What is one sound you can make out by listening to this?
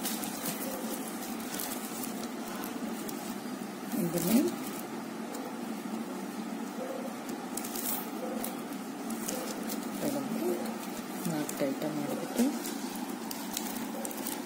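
Plastic strips rustle and tick softly as hands weave them.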